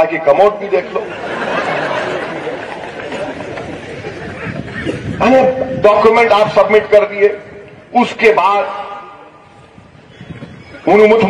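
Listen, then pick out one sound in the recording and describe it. A man speaks forcefully into a microphone, heard through loudspeakers with echo.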